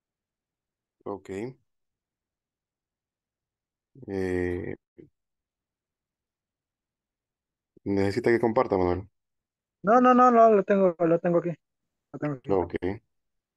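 A young man speaks with animation over an online call, with pauses between phrases.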